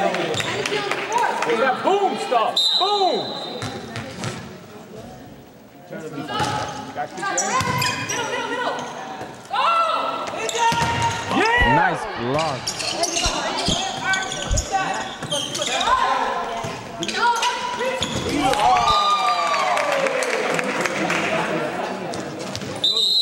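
Young women call out and shout across an echoing gym.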